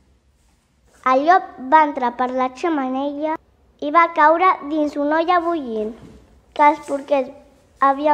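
Young children talk with excitement, close by.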